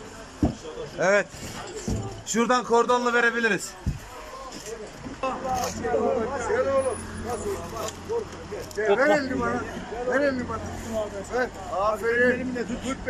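Several men shout and call out urgently close by.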